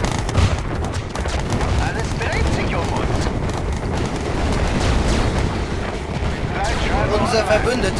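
Laser weapons zap repeatedly.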